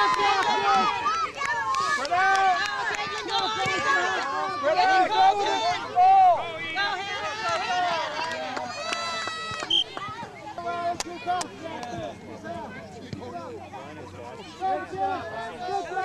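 Children shout while playing.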